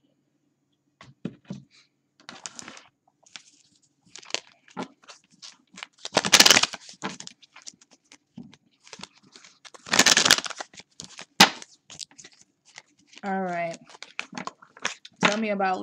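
Playing cards are shuffled, riffling and snapping.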